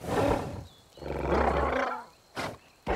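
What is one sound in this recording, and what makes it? A cartoon creature growls low.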